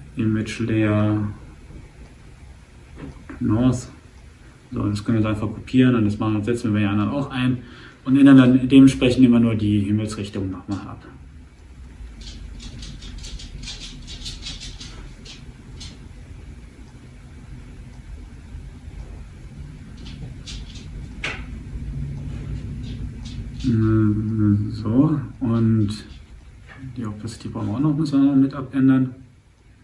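A man talks calmly and close to a microphone, with pauses.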